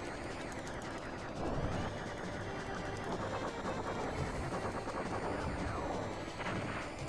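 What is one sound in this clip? Video game laser blasts fire rapidly.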